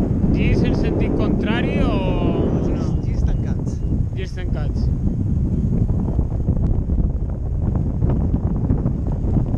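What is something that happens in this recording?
Wind rushes loudly past a microphone.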